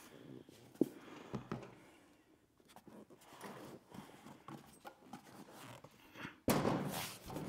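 Plastic panels rustle and creak as they are handled.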